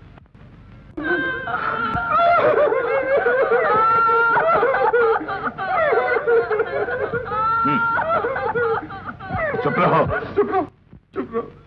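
A woman sobs and wails loudly.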